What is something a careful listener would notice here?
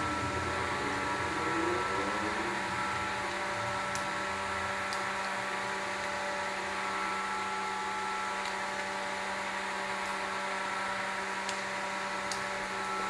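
A ratchet wrench clicks as bolts are turned.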